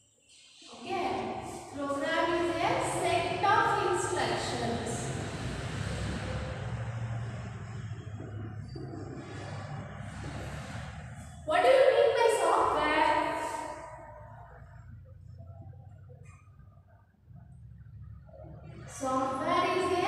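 A young woman speaks calmly, like a teacher explaining.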